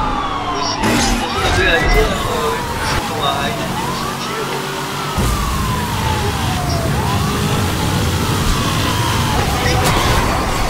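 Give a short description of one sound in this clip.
A powerful car engine roars and revs up through its gears.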